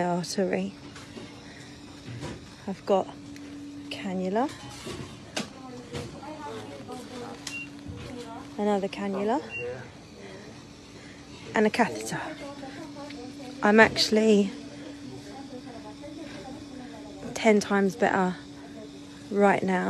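A young woman speaks close up into a phone.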